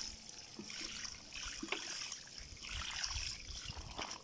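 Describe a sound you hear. Water pours from a watering can and splashes onto soil.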